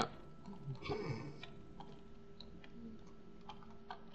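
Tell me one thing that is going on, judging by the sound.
Stone crunches as blocks are dug out.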